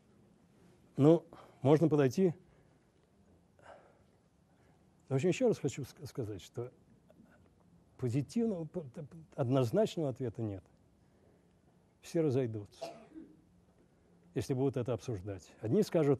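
An older man speaks calmly through a microphone, with pauses.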